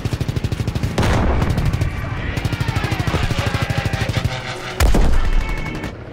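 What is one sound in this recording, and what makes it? Explosions boom as planes are hit.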